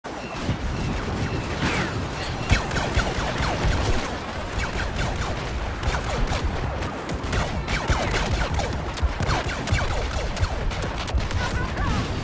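Laser blasters fire in quick, zapping bursts.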